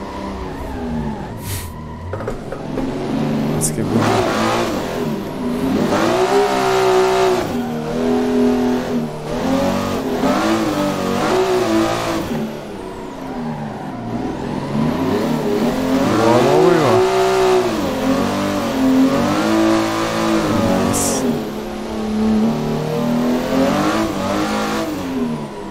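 A racing car engine revs loudly, rising and falling in pitch through gear changes.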